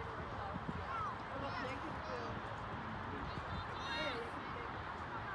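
Young women call out to each other from a distance across the field.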